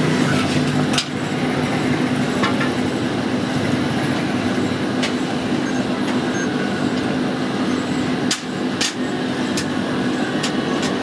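Metal tools scrape and tap against a metal casting.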